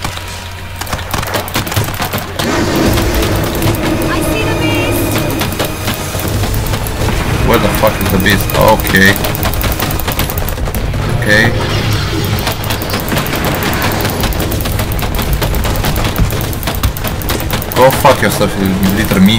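Guns fire rapid bursts of sharp shots.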